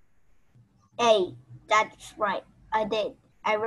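A young woman speaks with animation over an online call, close to the microphone.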